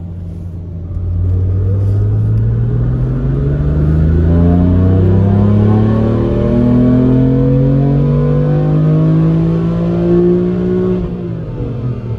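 A car engine revs up and climbs through the gears as the car accelerates.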